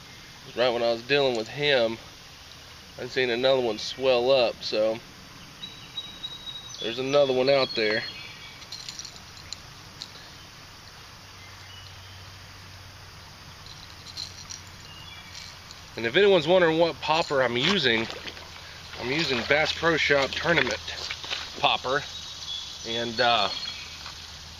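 A young man talks calmly and close by, outdoors.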